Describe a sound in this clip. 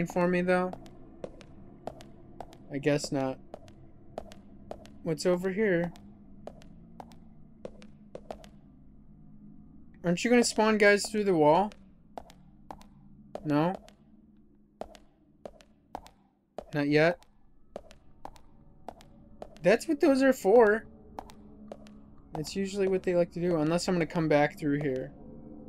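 Footsteps tread slowly along a hard, echoing corridor.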